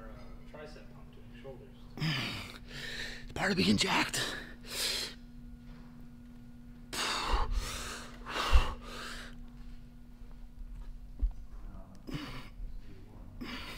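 A man speaks close by, breathless and strained.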